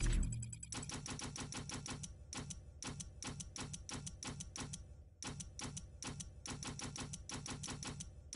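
Game menu blips tick quickly as a list scrolls.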